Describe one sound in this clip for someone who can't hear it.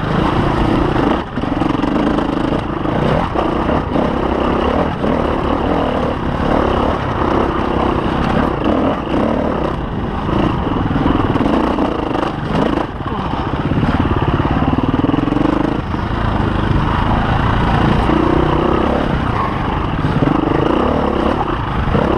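Tyres crunch and spatter over muddy dirt.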